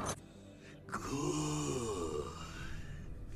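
An elderly man speaks slowly in a low, rasping voice.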